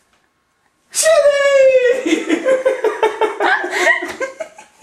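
A dog howls outside a door.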